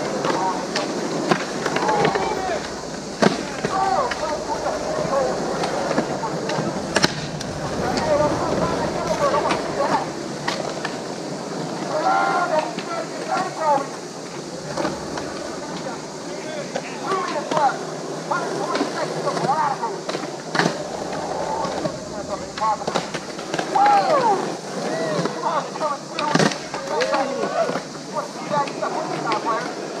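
Skateboard wheels roll and rumble on concrete outdoors.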